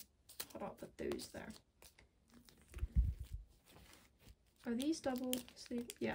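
Plastic binder pages rustle and crinkle as they are turned.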